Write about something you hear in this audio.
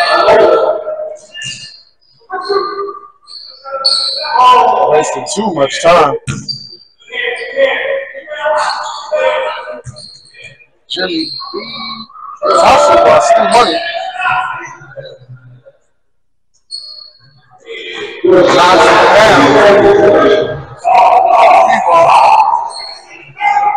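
Basketball players shout and call out to each other in an echoing gym.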